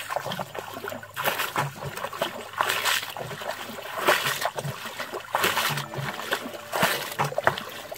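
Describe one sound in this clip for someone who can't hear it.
Bare feet slosh and squelch through shallow mud.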